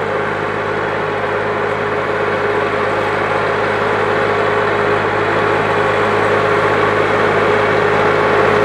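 Tractor wheels churn through wet mud and water.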